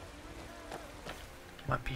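Footsteps in armour tread on stone.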